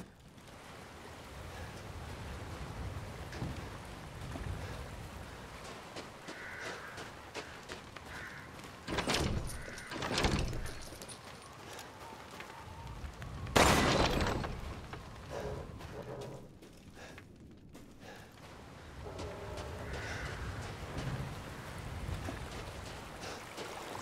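Footsteps crunch through deep snow.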